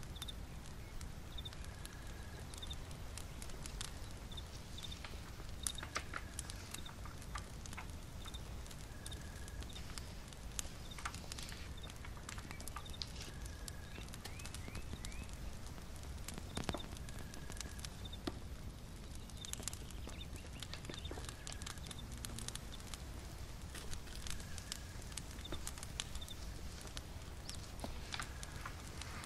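A fire crackles and pops softly.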